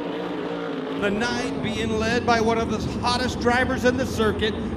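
A pack of racing engines roars loudly up close.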